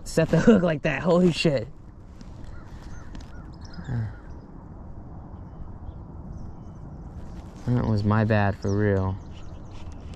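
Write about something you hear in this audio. A man talks calmly and close by, outdoors on quiet water.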